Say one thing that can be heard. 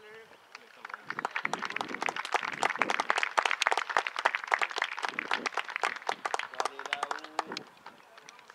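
Young players clap their hands rapidly outdoors.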